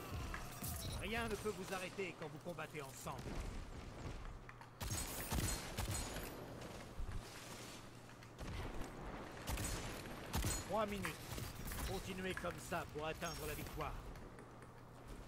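A young man talks into a headset microphone with animation.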